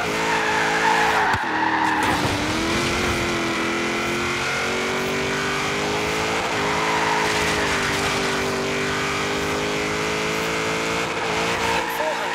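Tyres screech while a car slides through bends.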